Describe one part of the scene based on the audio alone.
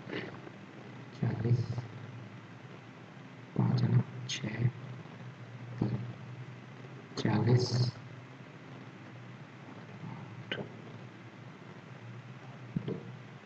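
A pen scratches on paper while writing.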